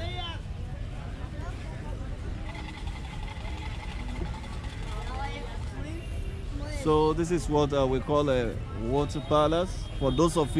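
A crowd of people chatter outdoors in the background.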